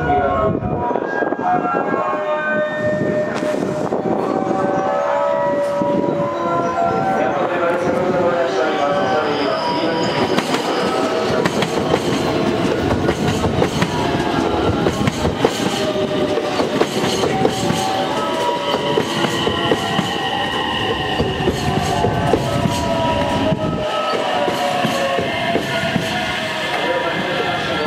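Train brakes squeal with a high, wavering whine.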